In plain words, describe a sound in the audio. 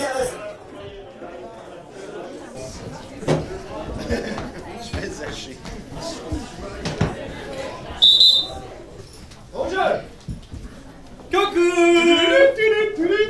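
Young men talk and call out with animation.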